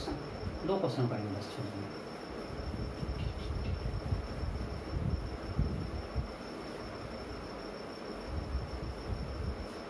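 A felt eraser rubs across a whiteboard.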